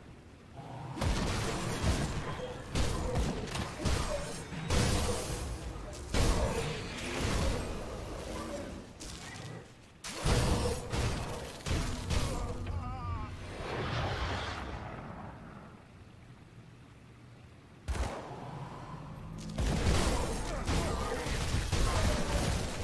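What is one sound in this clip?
Spell blasts and weapon hits crash in a video game battle.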